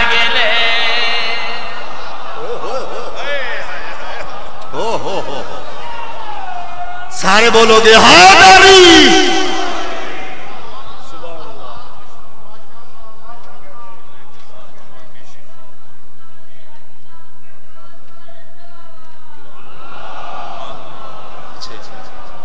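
A man chants loudly through a microphone.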